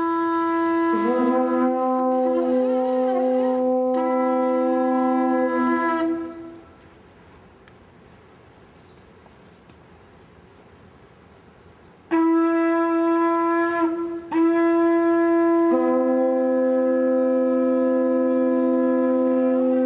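A second horn joins in with a lower, wavering tone.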